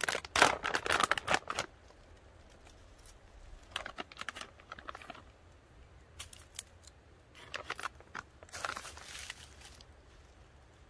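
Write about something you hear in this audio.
A foil packet crinkles and rustles in bursts close by.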